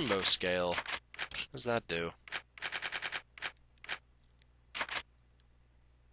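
Short electronic menu beeps sound in quick succession.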